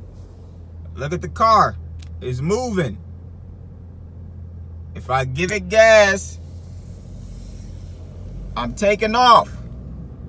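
A car engine revs up sharply in short bursts.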